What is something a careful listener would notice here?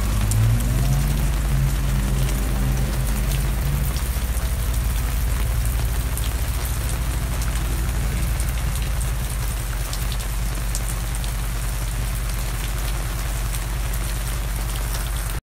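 Water streams off the edge of an awning and splashes on the ground.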